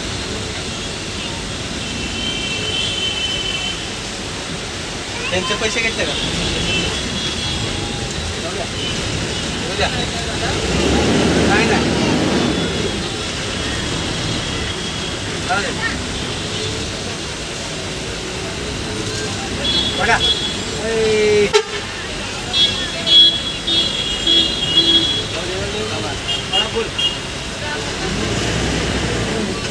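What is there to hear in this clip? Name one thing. A bus engine rumbles steadily from inside the cab.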